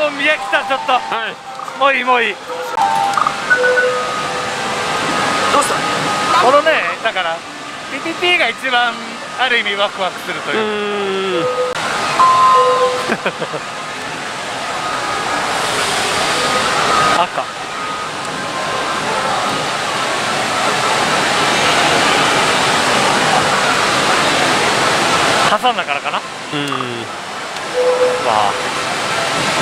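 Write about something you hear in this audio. A slot machine plays electronic jingles and beeps.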